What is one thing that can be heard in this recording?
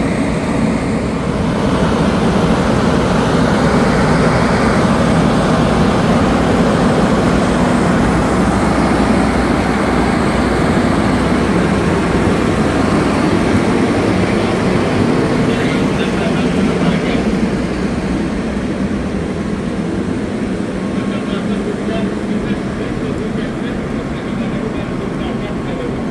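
A fire engine's motor idles with a steady low rumble.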